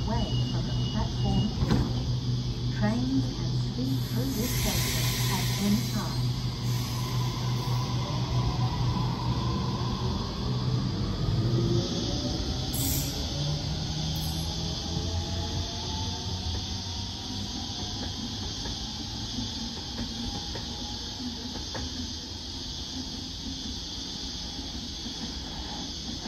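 An electric train hums and whines as it pulls away and gradually fades into the distance.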